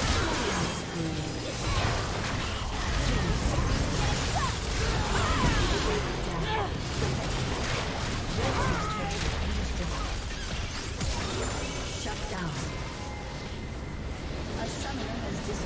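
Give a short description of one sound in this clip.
Video game spells and sword hits clash in a busy battle.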